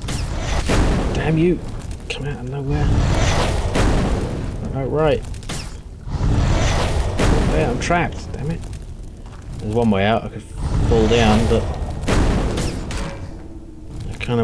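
Flames whoosh and roar loudly.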